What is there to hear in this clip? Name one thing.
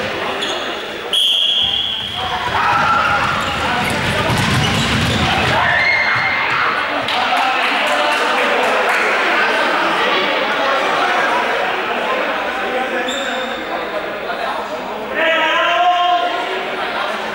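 Children and adults shout and chatter in a large echoing hall.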